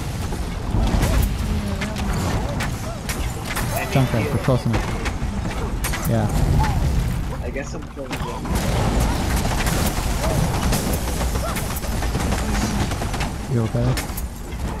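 Gunshots and blasts pop rapidly in a game.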